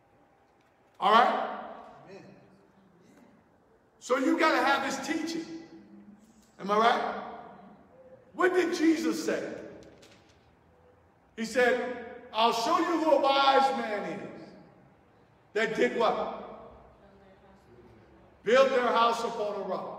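A man speaks loudly and forcefully into a microphone, in short bursts that echo around a large hall.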